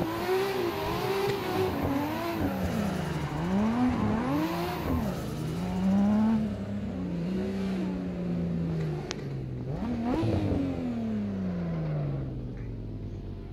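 A car engine revs up and down loudly.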